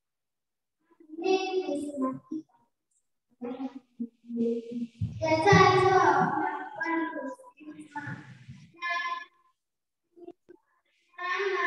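A young girl speaks into a microphone, heard through loudspeakers in a large echoing hall.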